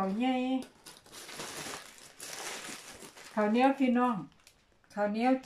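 A cloth rustles as a woven basket is opened.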